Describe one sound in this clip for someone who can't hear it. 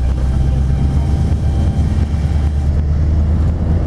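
A truck passes close by with a loud rumble.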